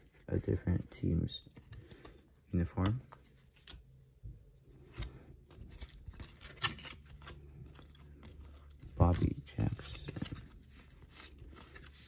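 Cardboard trading cards slide and flick against each other as they are shuffled by hand.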